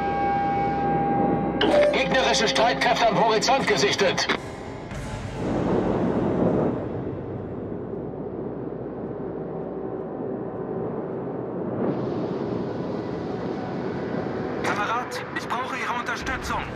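A warship's engines rumble steadily.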